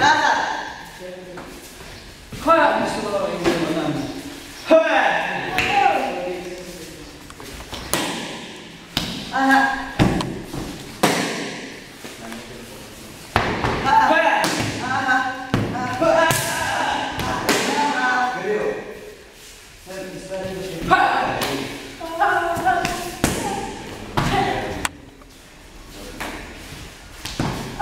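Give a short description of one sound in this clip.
Young men talk nearby in an echoing hall.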